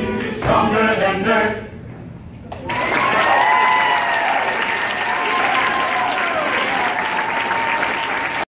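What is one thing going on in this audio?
A group of young men sings together in harmony, without instruments.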